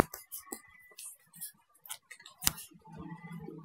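Paper banknotes rustle and crinkle as they are counted by hand.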